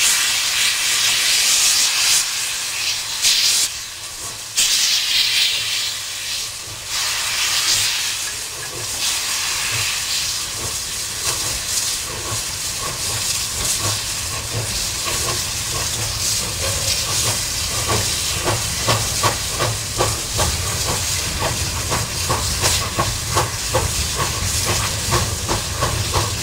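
Steam hisses and roars loudly from a locomotive.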